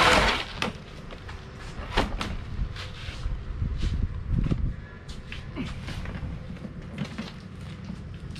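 Plastic drawers knock and rattle as they are carried.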